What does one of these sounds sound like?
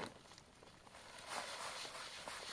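Loose soil pours and rustles into a basin.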